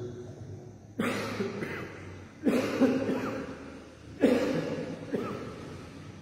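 A man coughs loudly into a microphone.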